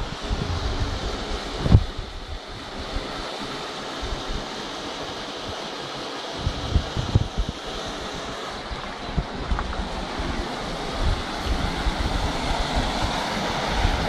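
A mountain stream rushes and splashes over rocks nearby.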